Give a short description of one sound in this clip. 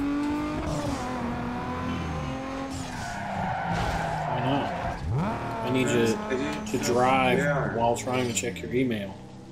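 A racing car engine revs and roars steadily.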